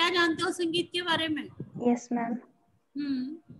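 An elderly woman speaks with animation over an online call.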